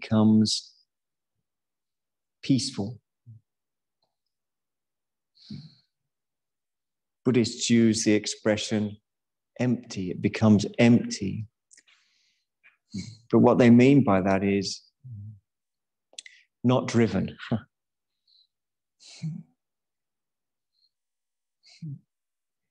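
A man speaks calmly over an online call, in short phrases with long pauses.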